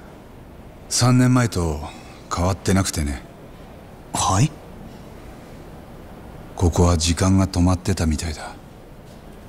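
A young man speaks quietly and thoughtfully, close by.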